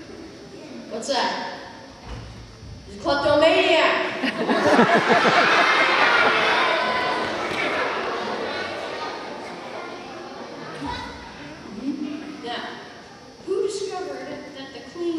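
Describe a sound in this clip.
A boy speaks into a microphone.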